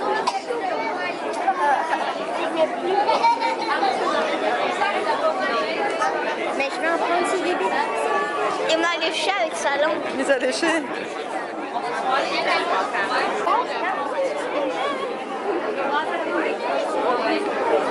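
Several children talk and chatter excitedly close by.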